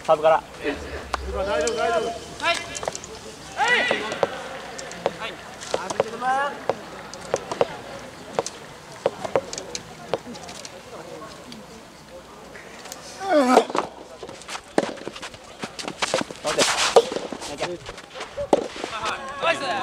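Young men shout and call out on the court.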